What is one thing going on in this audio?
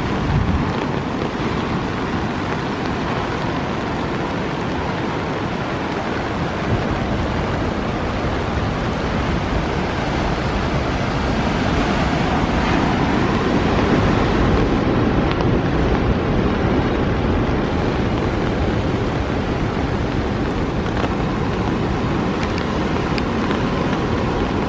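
Heavy rain pours steadily outdoors.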